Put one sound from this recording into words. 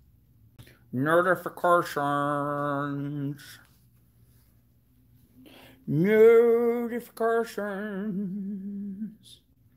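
A man sings out long, drawn-out notes.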